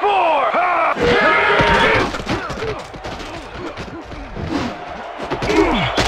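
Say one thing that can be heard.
Football players collide with dull thuds.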